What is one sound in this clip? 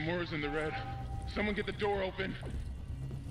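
A man speaks urgently, heard close.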